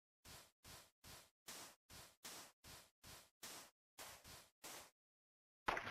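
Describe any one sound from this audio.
Footsteps crunch steadily over snow.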